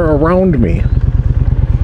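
A motorcycle engine revs up sharply and drops back.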